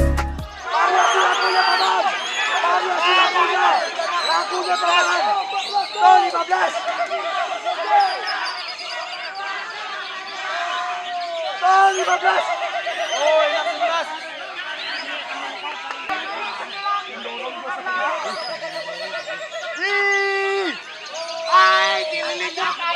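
Many caged birds chirp and sing busily close by.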